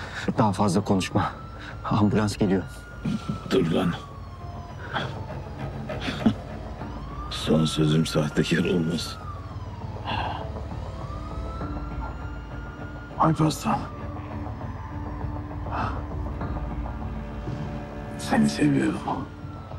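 A young man speaks softly and urgently, close by.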